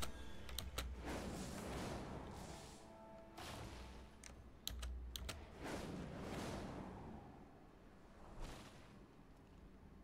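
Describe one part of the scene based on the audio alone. A rushing whoosh of wind swells and fades several times.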